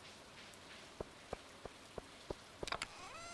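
Soft footsteps tap steadily on a path.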